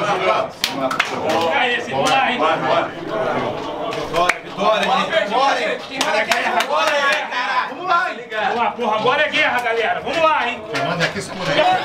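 Hands slap and clap in greetings.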